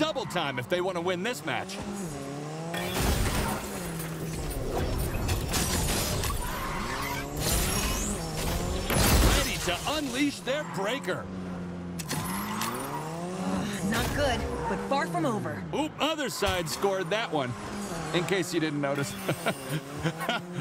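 A racing car engine revs up and down.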